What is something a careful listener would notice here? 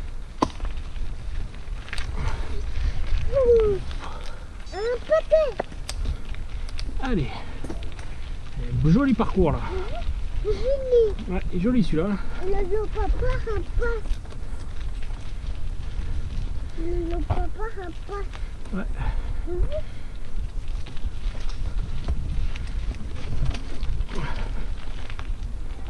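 Bicycle tyres roll and crunch over a rocky dirt trail.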